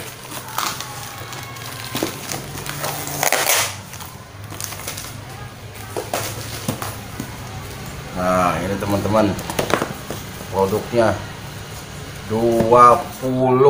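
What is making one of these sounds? Cardboard boxes rustle and scrape as they are folded and handled.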